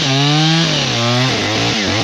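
A chainsaw cuts through a tree trunk.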